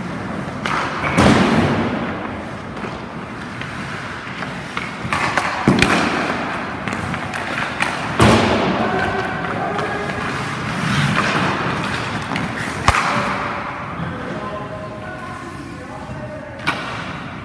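Hockey skates scrape and carve across ice in an echoing rink.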